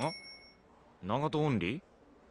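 A young woman asks a short question calmly.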